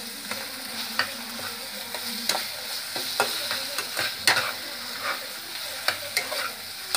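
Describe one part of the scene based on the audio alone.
A metal spatula scrapes and clatters against a cooking pot.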